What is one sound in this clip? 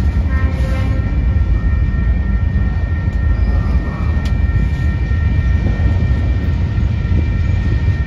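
Wheels clatter rhythmically over rail joints.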